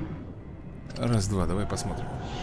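A huge sea creature roars with a deep, wavering growl.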